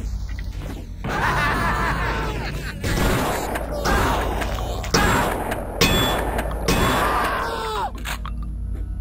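A monster growls and screams.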